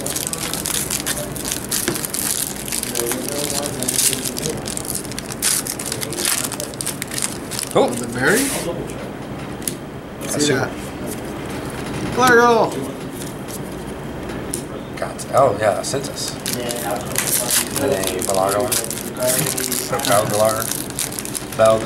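Foil card packs crinkle as they are torn open.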